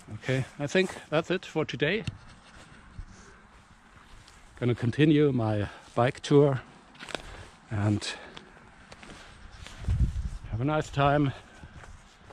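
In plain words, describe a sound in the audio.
A middle-aged man talks calmly and close up, outdoors.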